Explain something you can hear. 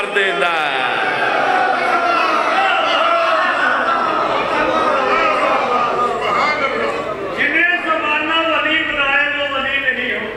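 A man sings a melodic recitation loudly into a microphone in an echoing hall.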